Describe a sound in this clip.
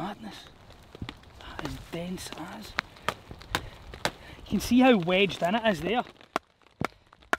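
Wood knocks and creaks as a man handles a stake.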